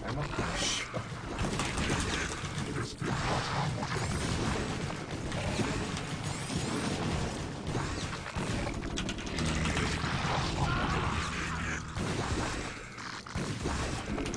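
Rapid gunfire and blasts crackle from a video game.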